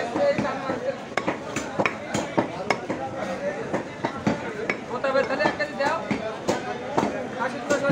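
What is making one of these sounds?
A cleaver chops meat on a wooden block with sharp knocks.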